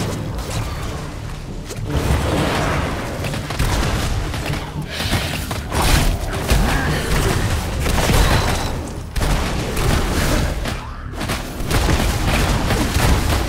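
Game sound effects of magic blasts and combat hits play continuously.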